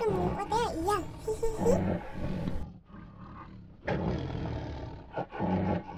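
A tiger growls.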